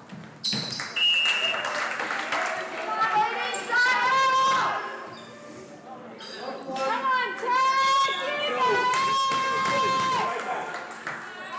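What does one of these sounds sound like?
Young women shout and cheer loudly.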